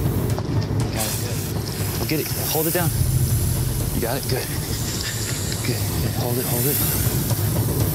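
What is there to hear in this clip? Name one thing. A man speaks urgently nearby.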